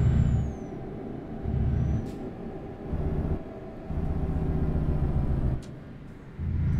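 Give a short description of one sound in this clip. A truck engine rumbles low, swelling and easing in bursts.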